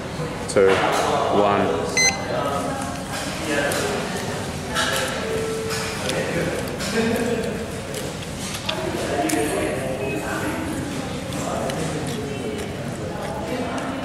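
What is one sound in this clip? A young woman bites and chews a crispy sandwich.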